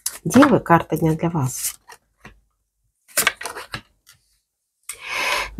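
A card is laid down softly on a cloth-covered table.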